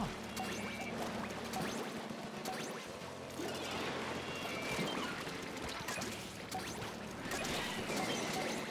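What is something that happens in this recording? Upbeat game music plays.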